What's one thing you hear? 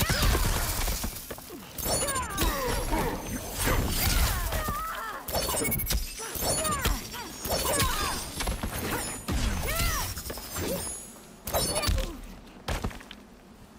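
Large creatures growl and roar loudly.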